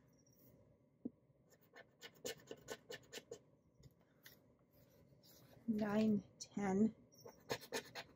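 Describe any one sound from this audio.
A sticker peels off a backing sheet with a soft crackle.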